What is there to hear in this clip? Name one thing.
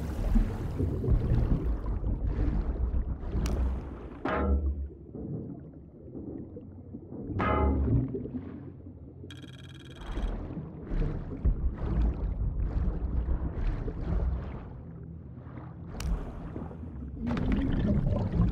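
Water churns with a low, muffled underwater rumble.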